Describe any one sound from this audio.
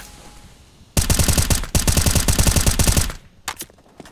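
A rifle fires loud rapid automatic bursts.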